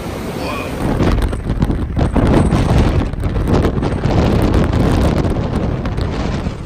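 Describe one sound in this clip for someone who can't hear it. Wind buffets loudly outdoors.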